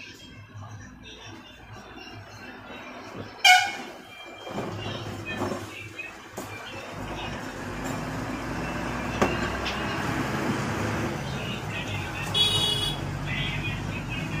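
Small metal parts clink and click as a power tool is taken apart by hand.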